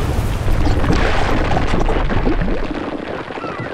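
A fiery explosion roars loudly.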